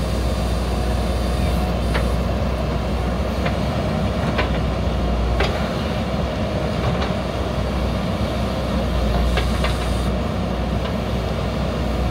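A digger bucket scrapes and scoops loose soil.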